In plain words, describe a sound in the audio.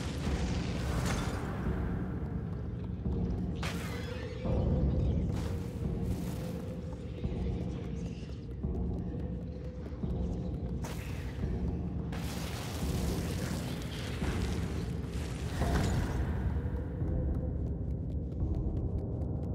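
Small footsteps patter across wooden floorboards.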